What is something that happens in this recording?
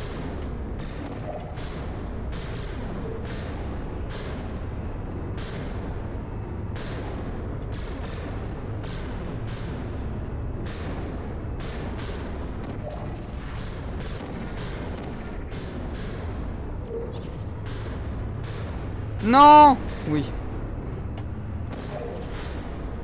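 A toy-like energy gun fires short zapping shots again and again.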